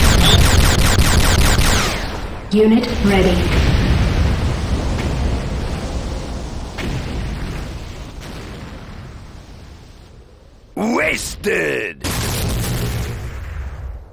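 Heavy footsteps thud on the ground as an armoured game character runs.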